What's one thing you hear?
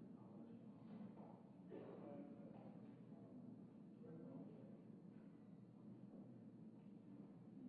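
Several men talk quietly among themselves in a large echoing hall.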